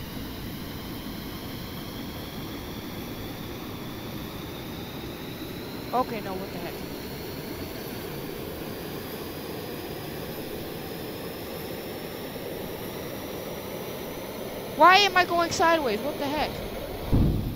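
A jet engine roars steadily with a high whine that slowly rises.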